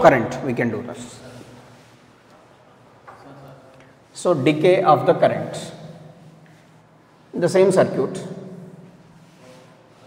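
A young man speaks calmly in short bursts, close by.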